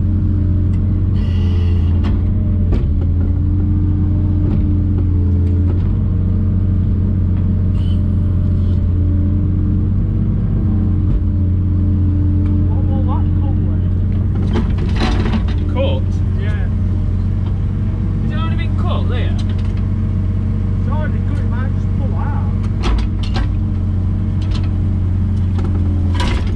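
A diesel excavator engine hums steadily up close.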